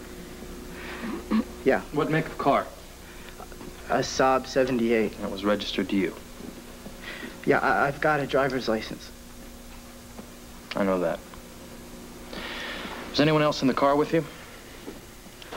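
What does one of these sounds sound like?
A young man speaks quietly and earnestly, close by.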